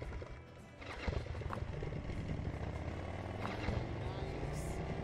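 An outboard motor rumbles steadily.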